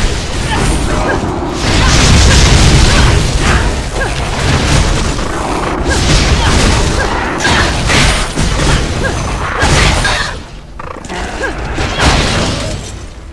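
Blows and hits thud in quick bursts.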